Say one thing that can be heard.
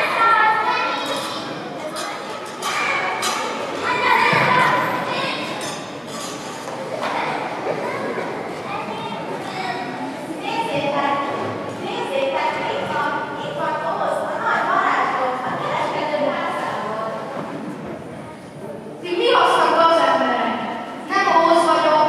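A young woman speaks into a microphone, heard over loudspeakers in a large echoing hall.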